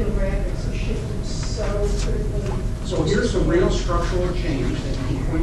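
A woman speaks calmly to a room, heard from a distance.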